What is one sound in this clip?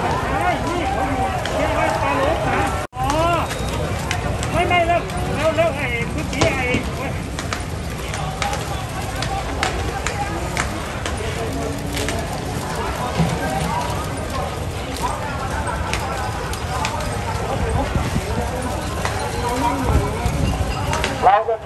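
Objects clatter and bang sharply on the street.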